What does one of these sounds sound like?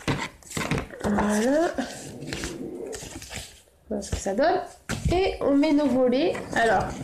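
A woman talks calmly and with animation close by.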